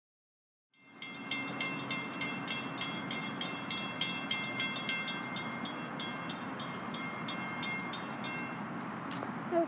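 A railroad crossing bell rings.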